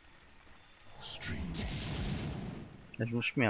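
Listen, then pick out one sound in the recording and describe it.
A magical whooshing effect swells and then fades.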